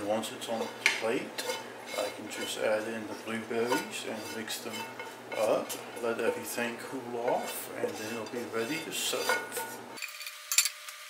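A spatula scrapes food out of a metal pan.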